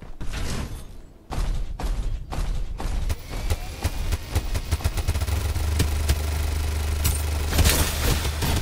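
A large mech stomps heavily across the ground.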